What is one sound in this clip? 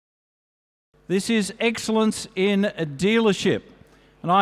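A man speaks through a loudspeaker in a large hall.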